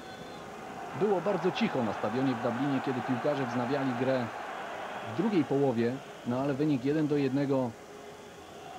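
A large stadium crowd sings loudly in unison.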